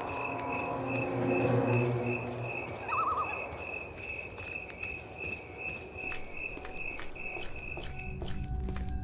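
Footsteps tap steadily and quickly while walking.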